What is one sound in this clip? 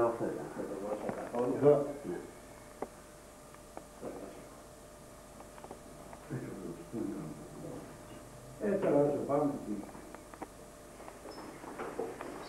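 An elderly man speaks slowly and calmly.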